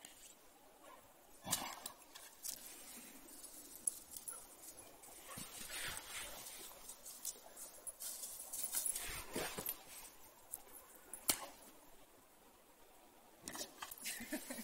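A dog digs and scrabbles in forest soil.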